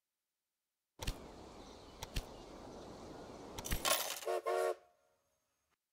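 A steam locomotive hisses and chuffs steam.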